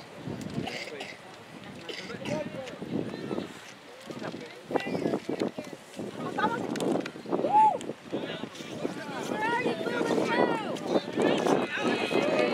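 Young players shout and call to each other across an open field.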